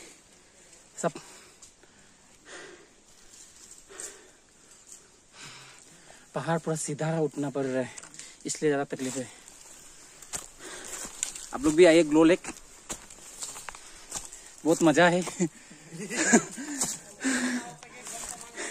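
Footsteps crunch on a leafy forest trail.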